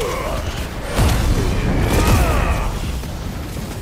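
A large explosion booms loudly.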